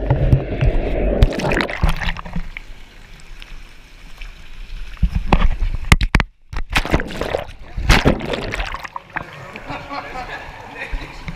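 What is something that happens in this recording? Bubbling water churns in a hot tub close by.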